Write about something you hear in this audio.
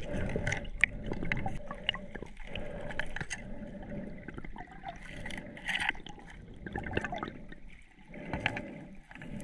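Water gurgles and knocks around an underwater microphone.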